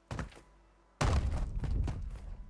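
Boots land with a heavy thud after a drop.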